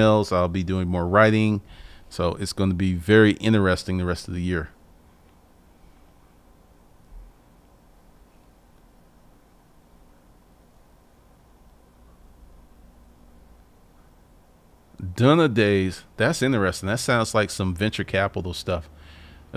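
A man speaks calmly and closely into a microphone, pausing in between.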